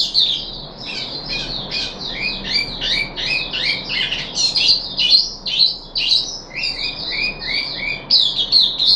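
A small bird sings a rapid, chattering warble close by.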